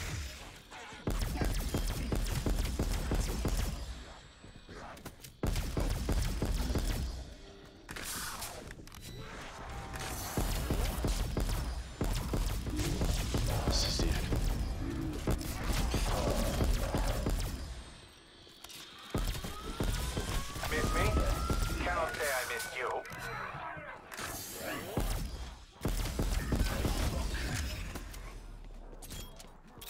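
A ray gun fires rapid buzzing blasts.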